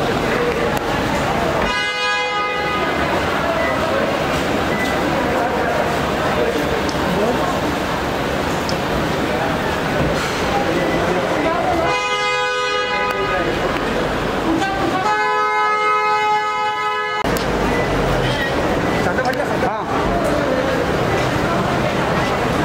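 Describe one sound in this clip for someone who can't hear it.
Men shout and call out loudly nearby.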